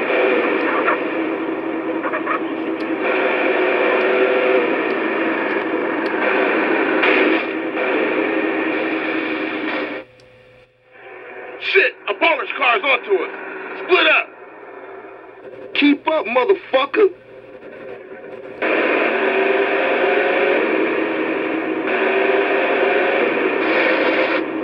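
Video game driving sounds play through a small, tinny television speaker.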